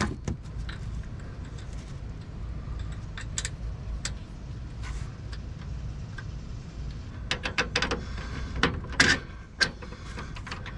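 Metal parts click and clank as hands work a ratchet mechanism.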